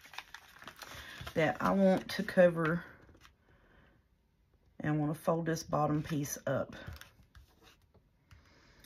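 Paper rustles softly as it is folded and handled.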